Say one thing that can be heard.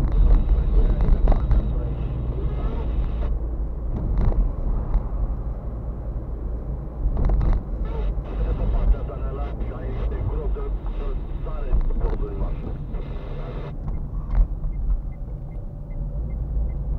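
Tyres rumble over the road surface.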